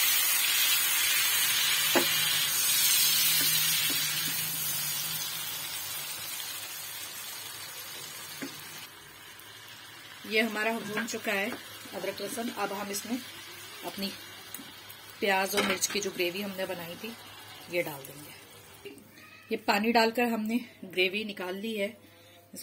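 A spoon scrapes against a pan.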